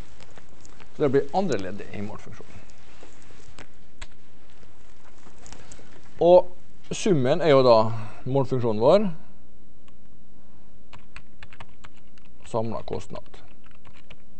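A man speaks through a microphone in short bursts.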